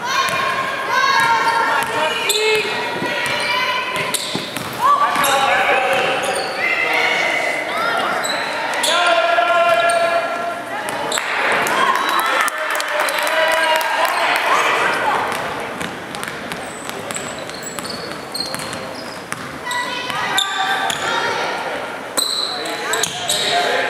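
Spectators shout and cheer with animation in a large echoing gym.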